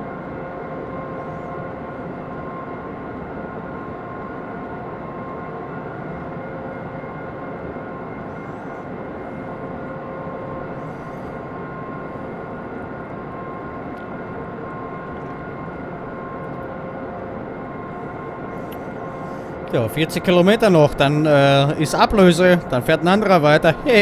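An electric train's motor hums steadily as it rolls along the track.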